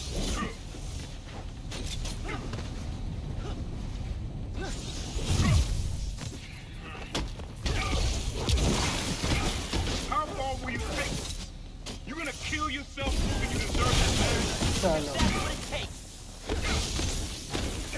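Punches and blasts thud and crackle in a fight.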